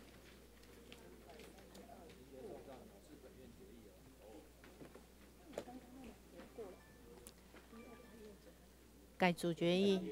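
People murmur quietly in the background.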